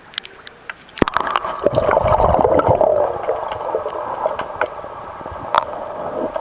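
Water gurgles and rushes, muffled as if heard underwater.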